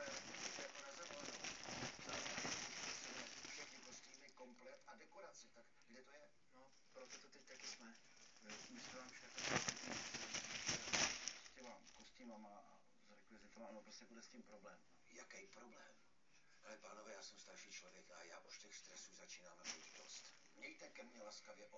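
Foil balloons crinkle and rustle close by.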